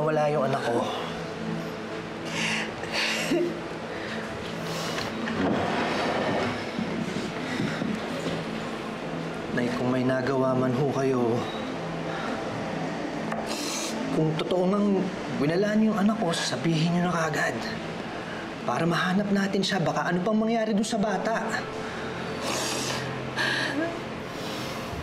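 A man speaks softly and earnestly close by.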